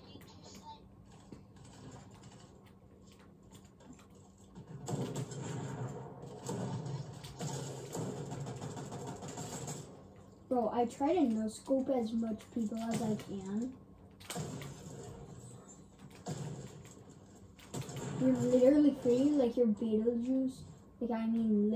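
Video game sound effects play from a television.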